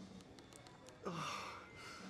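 A young man groans quietly.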